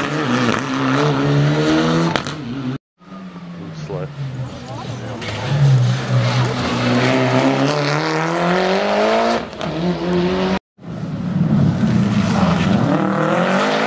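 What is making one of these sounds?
Tyres skid on loose gravel as a rally car slides through a bend.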